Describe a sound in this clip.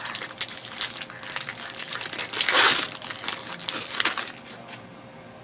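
Foil card packs crinkle and rustle as hands handle them.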